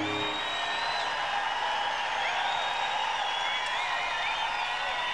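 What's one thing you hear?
A large crowd cheers and whistles loudly outdoors.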